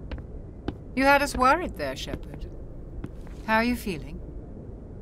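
A woman speaks warmly and asks a question.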